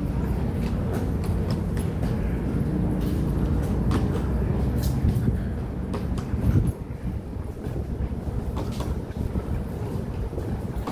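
Footsteps tap on a concrete walkway.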